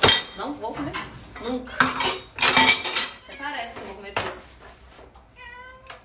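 Cardboard rustles and crinkles as a pizza box is handled.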